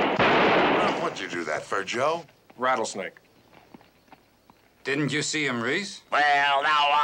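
A man speaks loudly with animation, close by.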